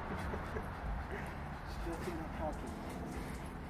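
A man speaks to a dog nearby.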